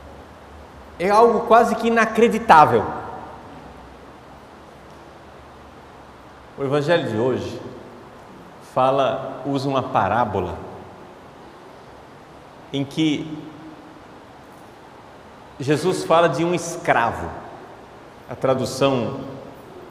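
A man speaks with animation into a microphone, in short bursts with pauses, in a slightly echoing room.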